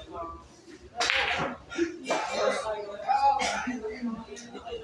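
Billiard balls knock together and roll.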